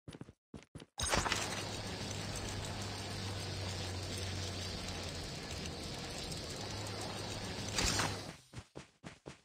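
Wind rushes steadily past a figure gliding through the air.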